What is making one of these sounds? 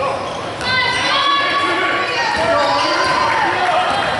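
A basketball bounces on the court as a player dribbles.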